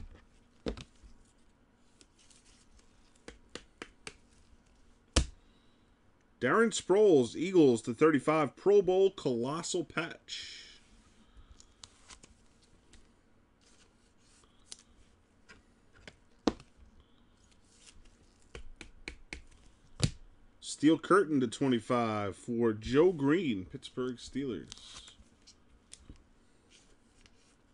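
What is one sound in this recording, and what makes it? Trading cards in plastic sleeves are handled and shuffled.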